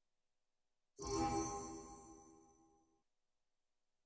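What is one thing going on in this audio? A bright menu chime rings out and slowly fades.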